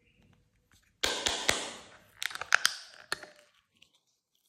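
A plastic mould clicks and snaps open.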